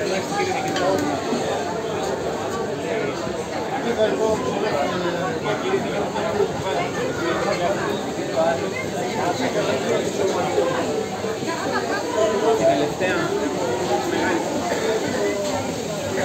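A crowd of men and women chatter loudly all around, outdoors.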